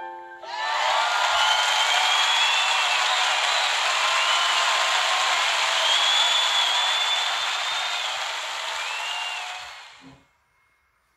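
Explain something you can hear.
A jet engine roars as a fighter plane streaks overhead.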